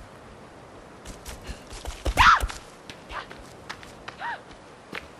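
Quick footsteps rustle through tall grass.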